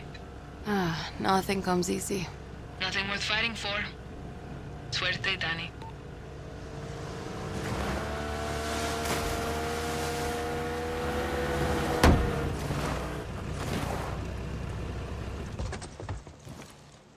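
A motorboat engine hums and rises in pitch as the boat speeds up.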